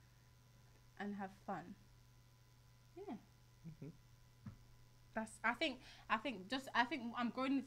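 A young woman speaks with animation into a close microphone, pausing now and then.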